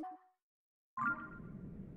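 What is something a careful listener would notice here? A game's soundscape swells up with a rush.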